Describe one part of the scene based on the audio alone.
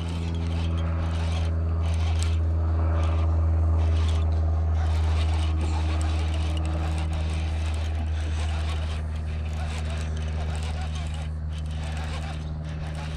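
A small boat motor hums steadily and low.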